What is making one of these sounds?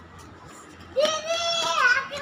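A young boy shouts loudly nearby.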